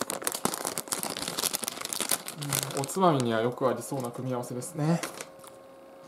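A plastic snack bag crinkles and rustles close by.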